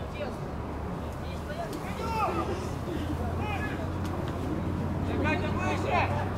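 Young men shout to each other from across an open field.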